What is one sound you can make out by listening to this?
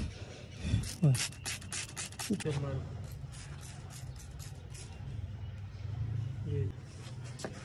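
A spray bottle hisses in short squirts.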